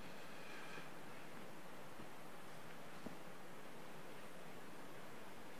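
A cloth rubs softly against hands.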